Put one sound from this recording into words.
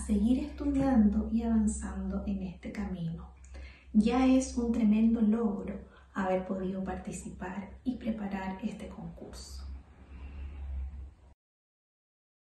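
A woman speaks calmly to the listener, close to a microphone.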